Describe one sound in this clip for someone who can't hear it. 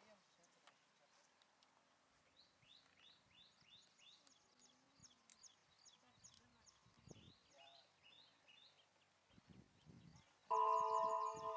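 A young man talks calmly outdoors.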